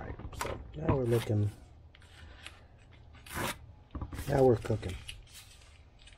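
Tape peels off a wooden board with a light rip.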